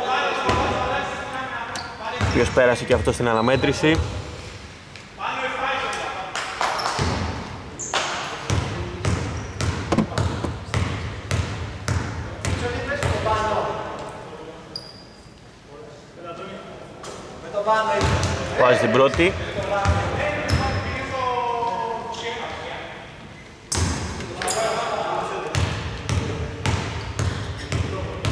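Basketballs bounce on a hard floor in a large echoing hall.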